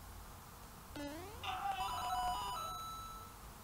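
A bright chiming jingle rings out as a coin is collected.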